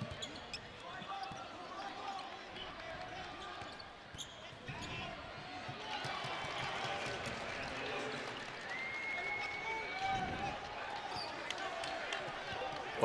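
A basketball bounces on the court as a player dribbles.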